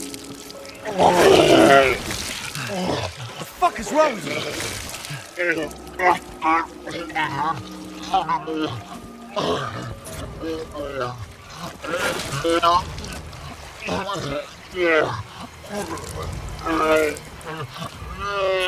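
A monster growls and snarls close by.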